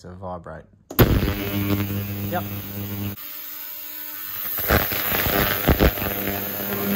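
An ultrasonic cleaner hums and buzzes loudly in water.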